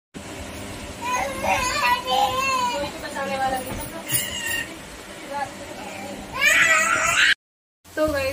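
A young child talks and calls out.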